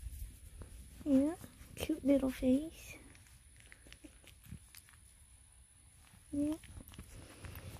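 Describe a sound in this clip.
A puppy whimpers and squeaks.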